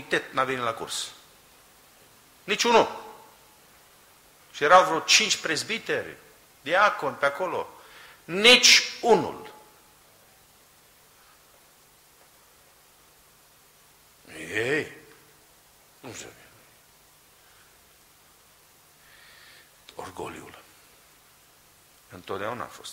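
A middle-aged man speaks emphatically into a microphone, in bursts with long pauses.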